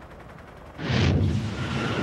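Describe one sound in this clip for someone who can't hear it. Jet planes roar past overhead.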